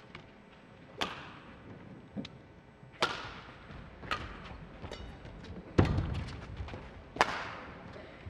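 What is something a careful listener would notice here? Badminton rackets strike a shuttlecock back and forth in a large indoor hall.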